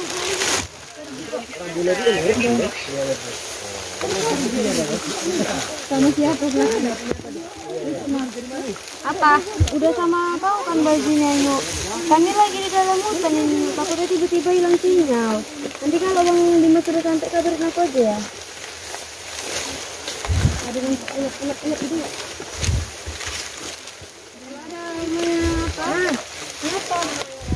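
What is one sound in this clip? Footsteps crunch on leaves and twigs.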